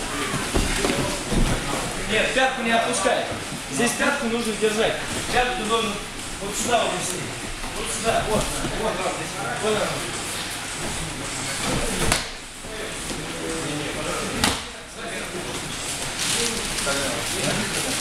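Bare feet shuffle and slap on a mat.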